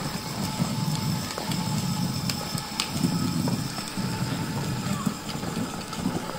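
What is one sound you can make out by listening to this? A toy electric motorbike whirs and hums as it rolls.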